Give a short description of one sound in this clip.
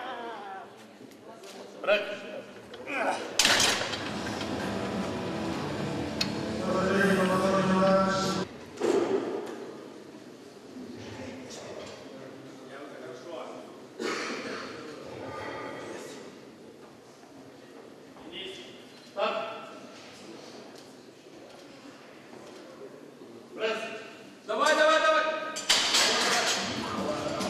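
Men shout encouragement in an echoing hall.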